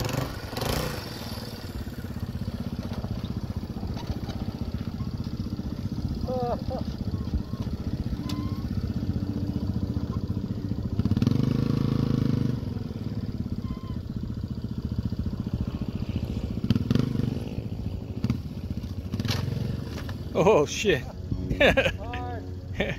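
A dirt bike engine idles steadily nearby.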